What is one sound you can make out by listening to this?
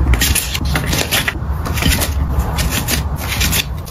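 Paper cards rustle and slide against each other.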